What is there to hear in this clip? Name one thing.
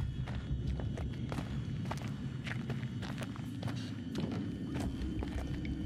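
Footsteps crunch on a dirt floor.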